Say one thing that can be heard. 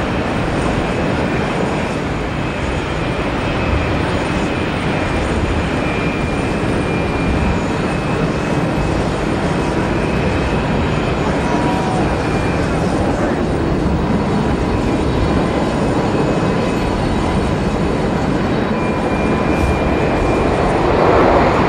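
A jet engine roars loudly as a supersonic airliner speeds down a runway and lifts off.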